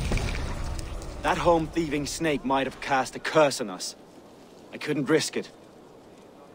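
A man speaks angrily in a deep voice, close by.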